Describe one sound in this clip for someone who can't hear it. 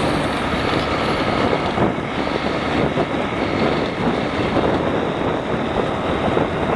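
A 150cc scooter engine drones while cruising on a road.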